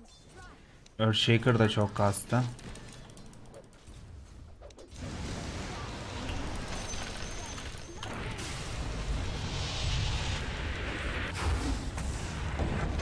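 Game spell and combat effects whoosh and crackle.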